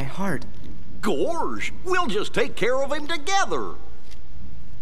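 A man speaks with a goofy, animated voice.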